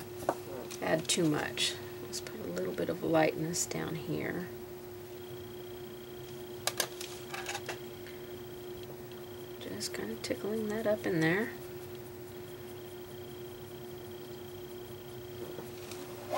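A paintbrush brushes softly across a painted board.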